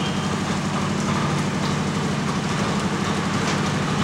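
A metal gate latch rattles.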